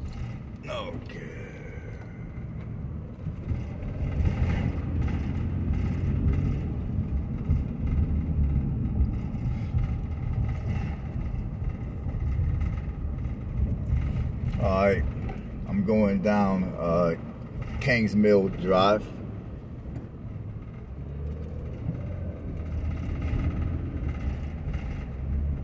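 A car rolls along a road with a low, steady rumble.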